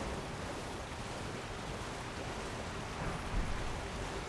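A waterfall pours and rushes nearby.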